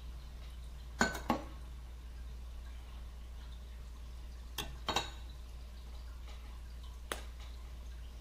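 A metal knife clinks against a glass cup.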